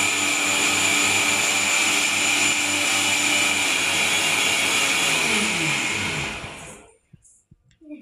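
A blender whirs loudly, then winds down and stops.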